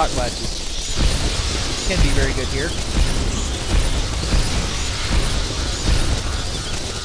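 Explosions boom in short bursts.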